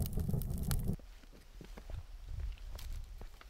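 Footsteps crunch on dry ground and twigs.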